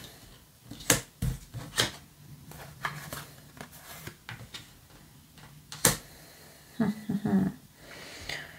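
Cards tap and slide on a wooden table.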